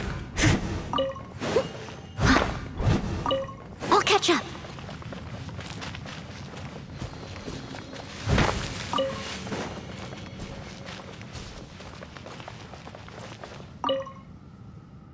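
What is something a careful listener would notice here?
A bright chime rings several times.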